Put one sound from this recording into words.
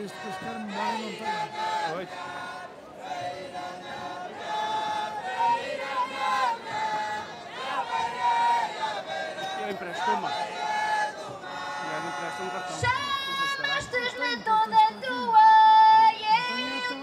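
Lively folk music plays with a band.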